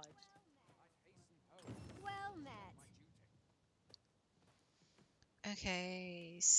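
A woman speaks casually into a close microphone.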